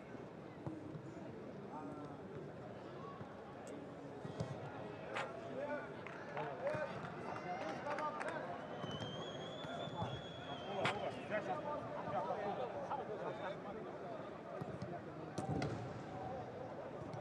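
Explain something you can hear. Men talk and call out nearby.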